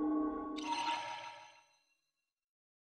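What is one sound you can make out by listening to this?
A magical shimmering chime rings out and fades.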